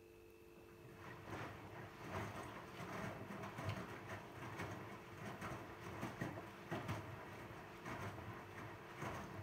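Laundry tumbles and sloshes with water inside a washing machine drum, thumping softly.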